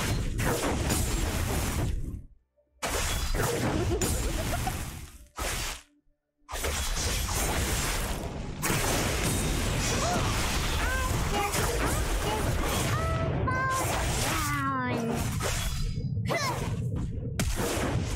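Spells and weapons clash and whoosh in a game battle.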